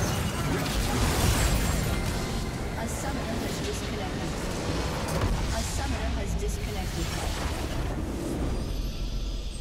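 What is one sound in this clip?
Game battle effects clash, zap and explode loudly.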